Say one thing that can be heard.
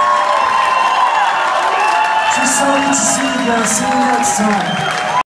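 A crowd cheers and shouts close by.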